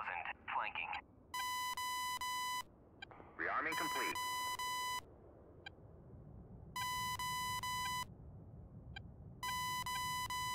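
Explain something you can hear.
A fighter jet's engines rumble, heard from inside the cockpit.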